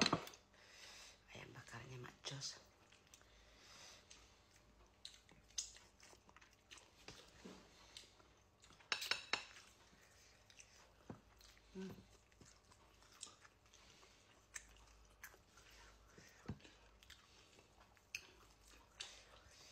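Crispy food crackles and tears as hands pull it apart.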